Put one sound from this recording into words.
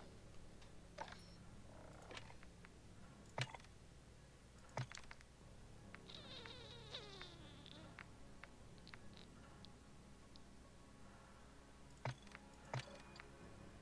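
Short menu clicks and blips sound now and then.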